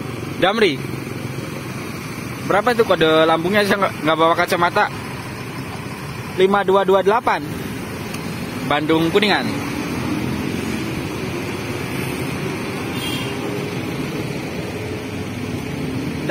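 Motorcycles ride past with buzzing engines.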